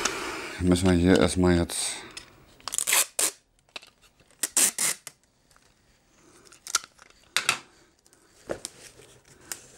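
Plastic wrapping crinkles in a man's hands.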